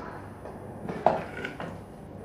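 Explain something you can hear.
A bowl clinks down on a table.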